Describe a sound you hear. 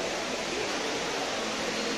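Water pours steadily down a wall fountain.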